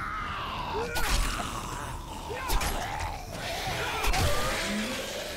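A blade slashes and thuds into flesh.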